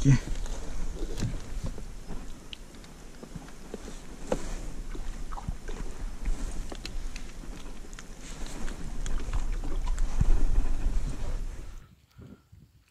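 Water laps gently against a kayak hull.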